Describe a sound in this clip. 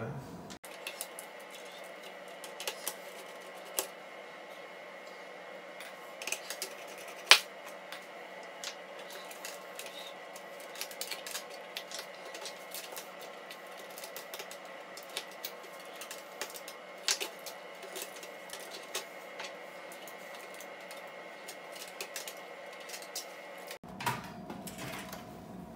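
Small metal parts click and clatter as a screwdriver works.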